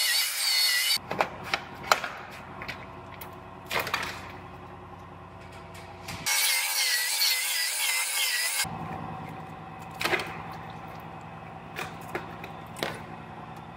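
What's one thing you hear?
A metal pick taps and scratches against metal.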